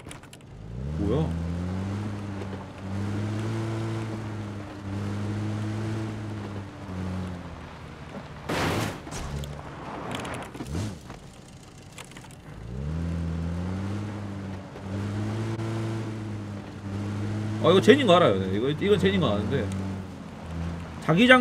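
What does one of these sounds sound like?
A vehicle engine drones and revs as it drives over rough ground.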